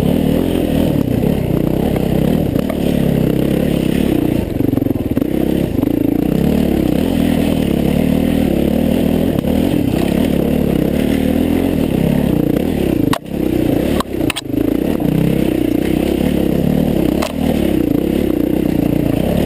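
A dirt bike engine revs hard under load while climbing a steep trail.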